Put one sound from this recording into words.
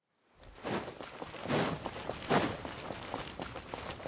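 Footsteps patter quickly on a hard stone floor.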